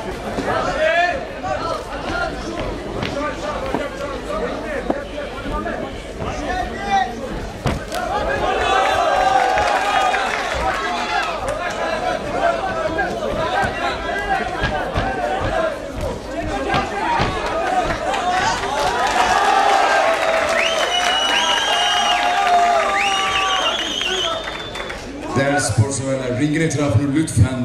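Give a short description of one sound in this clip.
A crowd of spectators shouts and cheers loudly nearby.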